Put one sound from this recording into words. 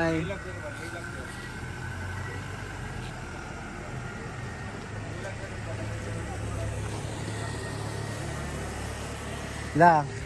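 A car engine hums as it drives past slowly.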